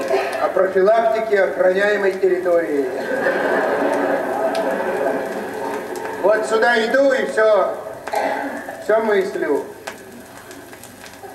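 A record plays music with singing.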